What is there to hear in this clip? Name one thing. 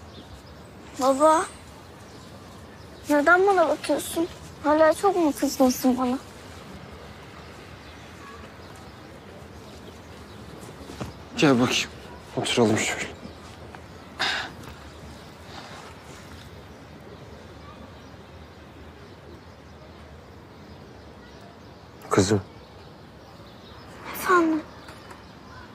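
A young girl speaks softly and close by.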